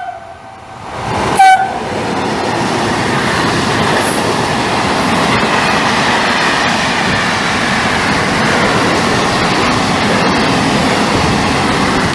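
A freight train rushes past close by with a loud roar.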